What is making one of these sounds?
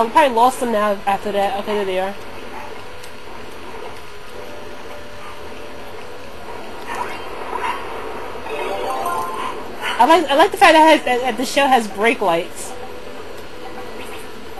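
Bright video game music and effects play through a television speaker.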